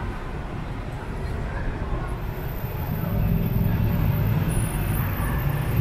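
City traffic rumbles past on a cobbled street.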